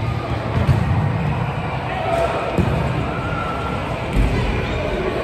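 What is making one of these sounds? A ball is kicked with a dull thump in a large echoing hall.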